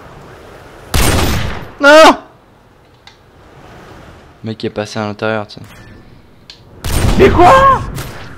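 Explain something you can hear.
A rifle fires loudly in a video game.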